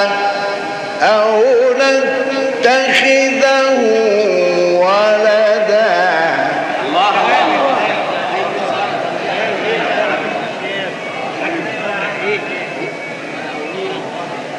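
A man chants in a long, drawn-out melodic voice, heard through an old recording.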